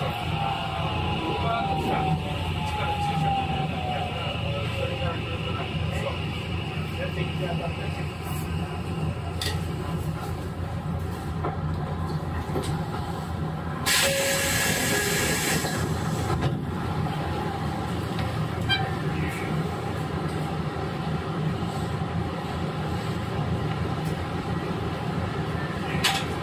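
An electric train hums and rumbles steadily nearby.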